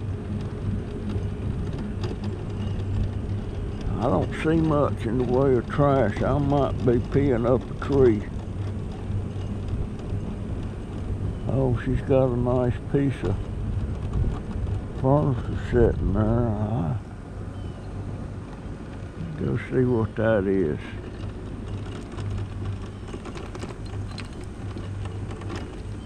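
Tyres roll over rough pavement.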